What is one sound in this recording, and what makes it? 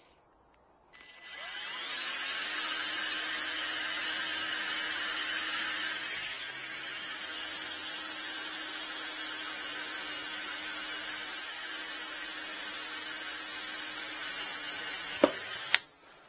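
A small power tool whirs steadily at close range.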